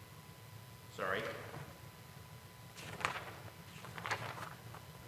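A man reads out quietly at a distance.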